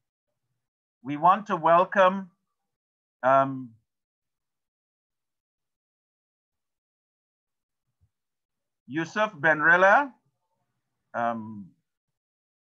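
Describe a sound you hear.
A man speaks calmly in short phrases over an online call.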